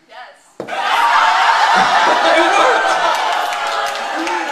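An audience cheers and whoops.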